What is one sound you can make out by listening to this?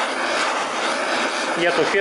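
A gas torch hisses steadily.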